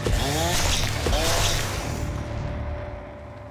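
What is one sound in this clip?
A chainsaw roars loudly.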